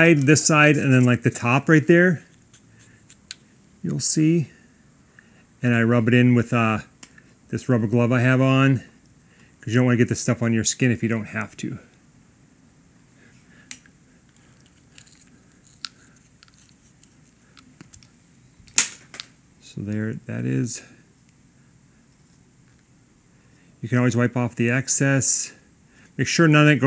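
A metal hex key clicks faintly as it turns bolts.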